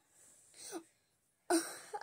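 A young girl gasps in surprise.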